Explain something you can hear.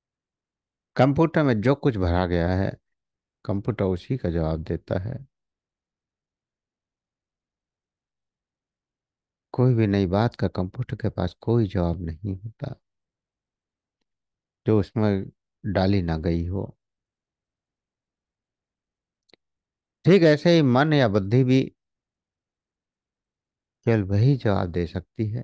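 A middle-aged man speaks calmly over an online call, in short phrases with pauses.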